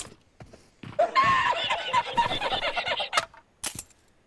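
A middle-aged man laughs loudly and heartily.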